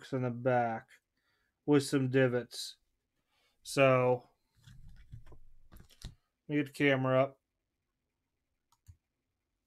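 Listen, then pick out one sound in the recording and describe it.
Gloved hands handle a stiff trading card with a soft rustle.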